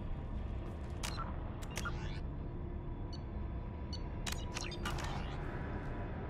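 Computer menu clicks and beeps sound a few times.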